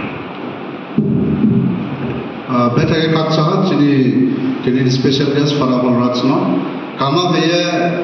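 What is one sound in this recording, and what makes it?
A man speaks through a microphone and loudspeakers in an echoing hall.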